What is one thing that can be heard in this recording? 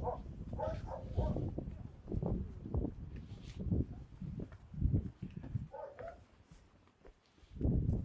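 Wind gusts against the microphone outdoors.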